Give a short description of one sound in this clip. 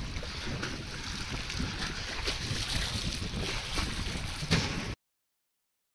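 Water laps against a floating platform in the wind.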